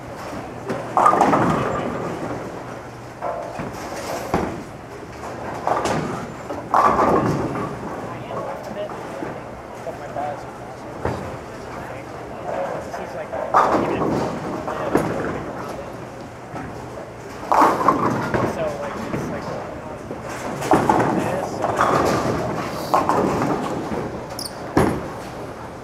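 Bowling pins crash and clatter in a large echoing hall.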